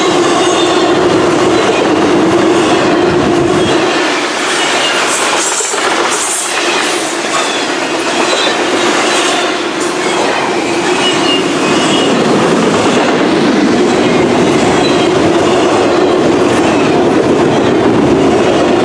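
A long freight train rumbles past close by with a steady roar.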